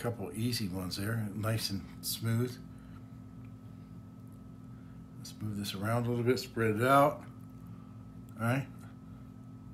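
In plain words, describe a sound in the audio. A man talks calmly close by, in short bursts.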